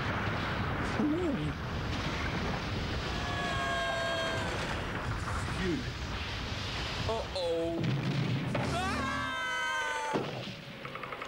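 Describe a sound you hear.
A cartoon male character speaks with alarm.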